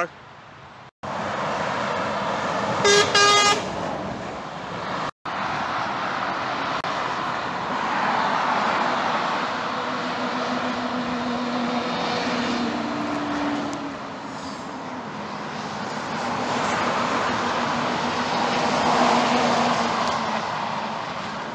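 Cars and lorries rush past on a dual carriageway below, with tyre roar rising and falling.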